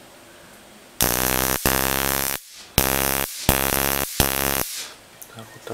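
An electric spark buzzes and crackles loudly in short bursts.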